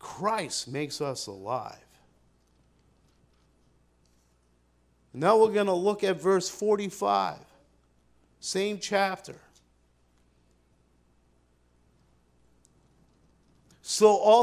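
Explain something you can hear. An older man speaks calmly into a microphone, with pauses between phrases.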